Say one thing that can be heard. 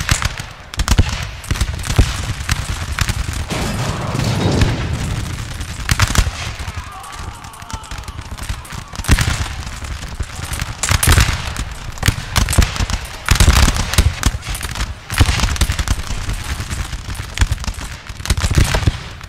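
Muskets fire in rapid, crackling volleys.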